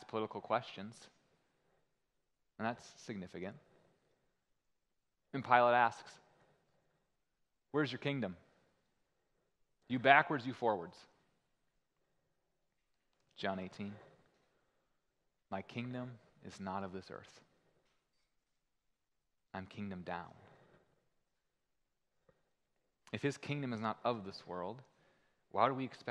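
A young man speaks calmly through a microphone in short phrases with long pauses.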